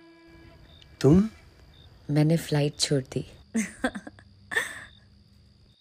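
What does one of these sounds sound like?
A woman speaks warmly, close by.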